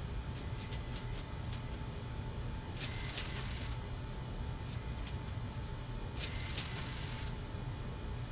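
Short electronic chimes ring out in quick bursts.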